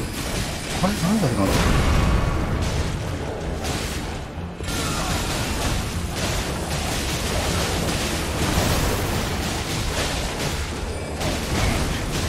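Heavy weapons clash and swing with whooshing blows.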